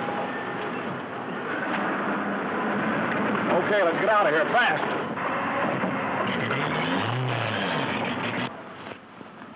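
Street traffic rumbles and hums loudly nearby.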